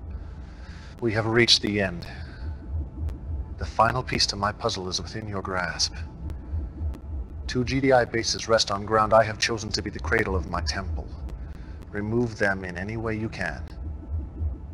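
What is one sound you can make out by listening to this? A man speaks calmly and menacingly through a speaker.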